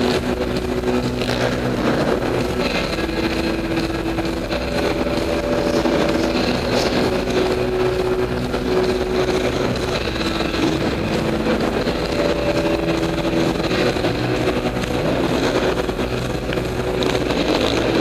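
A motorcycle engine revs and idles in a large echoing hall.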